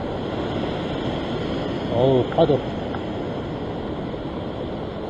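Wind rushes over the open water.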